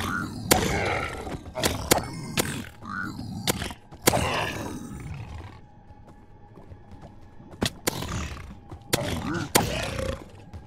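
A sword strikes with sharp, repeated hits.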